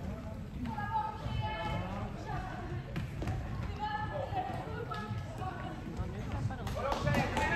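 Plastic sticks click against a ball.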